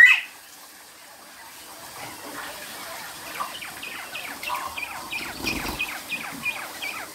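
Water sprays from a hose.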